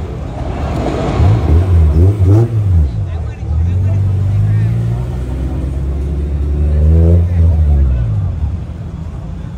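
A car engine revs loudly and roars close by.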